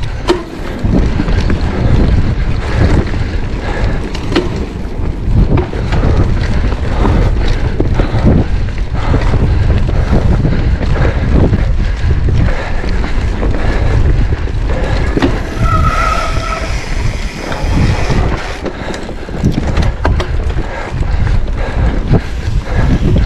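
Bicycle tyres roll and bump over a dirt trail.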